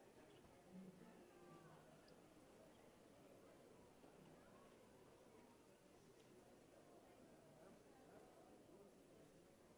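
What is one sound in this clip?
A crowd murmurs softly in the hall.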